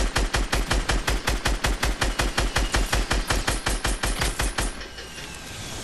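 Rapid gunshots fire in quick succession.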